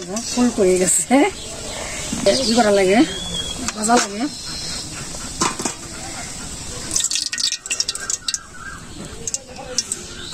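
Oil sizzles in a frying pan.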